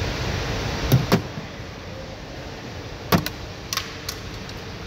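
A plastic trim clip snaps and clicks as a pry tool works it loose.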